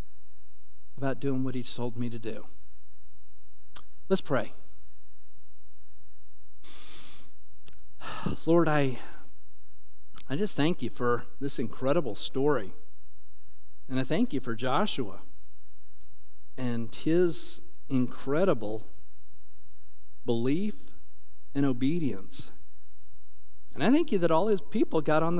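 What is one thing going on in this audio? A middle-aged man speaks slowly and calmly through a microphone, with pauses.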